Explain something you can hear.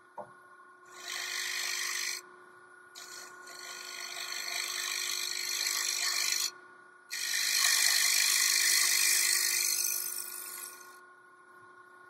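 A wood lathe's gouge scrapes and hisses against spinning wood in long bursts.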